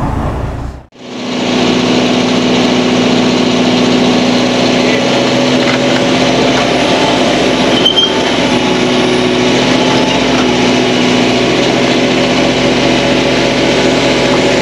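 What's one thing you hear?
An excavator engine drones steadily nearby outdoors.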